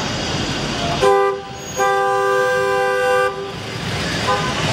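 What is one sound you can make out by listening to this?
A car horn honks in long blasts.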